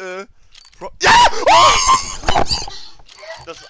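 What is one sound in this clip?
A young man shouts loudly in excitement.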